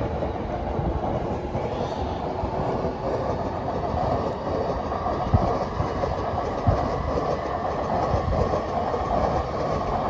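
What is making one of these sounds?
A train rumbles and clatters along the tracks below.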